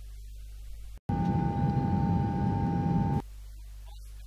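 A steady test tone beeps.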